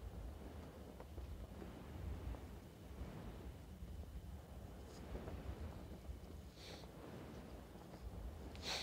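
Wind rushes steadily past during a parachute descent.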